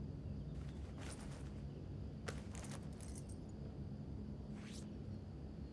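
Clothes hangers rattle on a metal rail.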